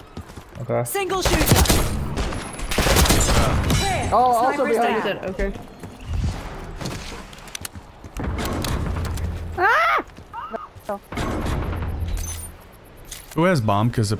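A rifle fires in rapid bursts close by.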